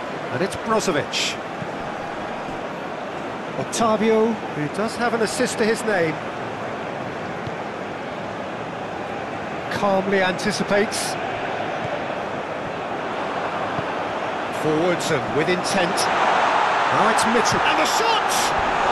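A large stadium crowd roars steadily, swelling louder near the end.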